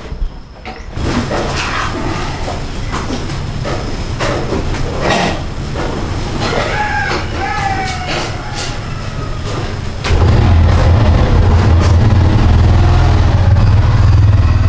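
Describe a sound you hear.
A motorcycle engine idles and then revs louder.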